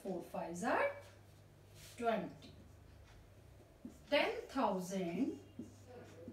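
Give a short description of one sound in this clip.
A woman speaks calmly and clearly, close by, explaining in short phrases.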